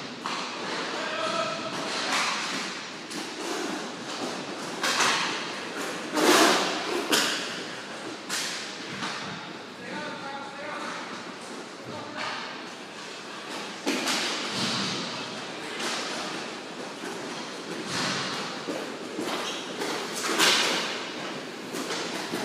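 Hockey sticks clack sharply against a ball and the floor, echoing.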